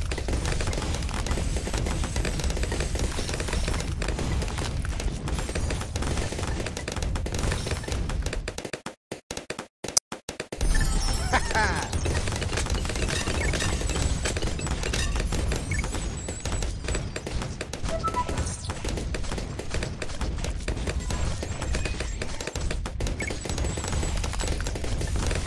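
Cartoon bombs explode in a video game.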